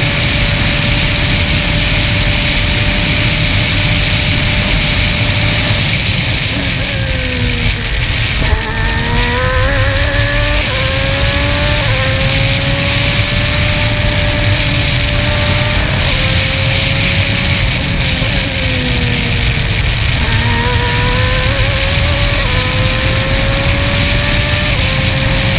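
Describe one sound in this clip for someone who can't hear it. A race car engine roars at high revs, dropping as the car brakes and rising again through the gears.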